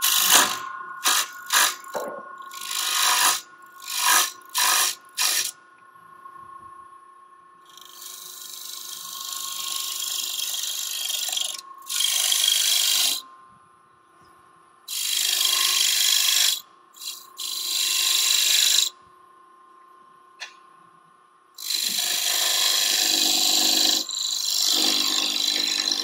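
A chisel scrapes and hisses against spinning wood in bursts.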